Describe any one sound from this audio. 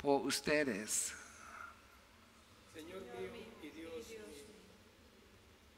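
An elderly man speaks slowly and solemnly through a microphone in a reverberant room.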